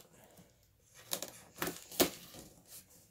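A blade slits packing tape on a cardboard box.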